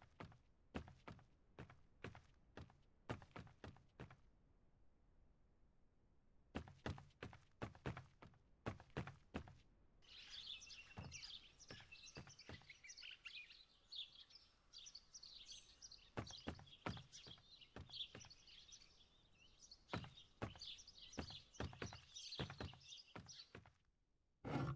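Footsteps thud steadily on wooden floors.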